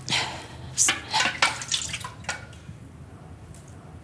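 A wooden spoon scrapes inside a metal pot.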